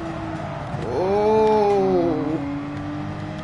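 A racing car engine blips sharply as gears change.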